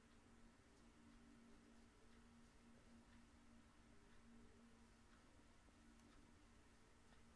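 A crochet hook softly ticks and rustles through yarn.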